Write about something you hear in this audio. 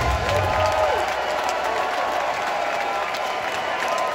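Cymbals crash on a drum kit.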